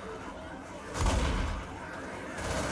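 A shotgun fires loud, booming shots.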